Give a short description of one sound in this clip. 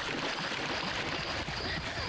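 Water splashes softly as someone wades through it.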